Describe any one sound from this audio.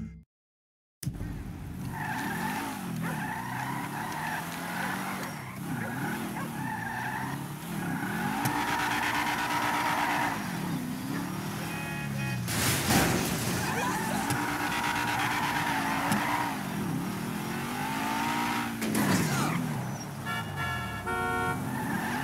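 A car engine revs up and down as the car speeds along.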